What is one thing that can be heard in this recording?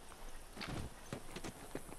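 Clothing and gear rustle as a figure climbs over a ledge.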